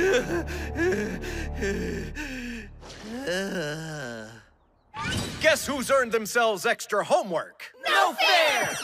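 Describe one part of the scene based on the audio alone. A man speaks in an exaggerated, animated cartoon voice.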